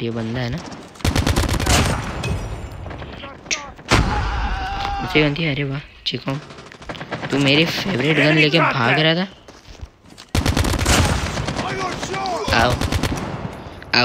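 Rapid gunfire bursts out in short loud volleys.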